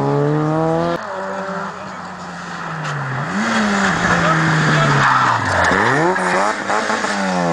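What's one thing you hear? A second rally car engine approaches, roaring louder and revving high through a corner.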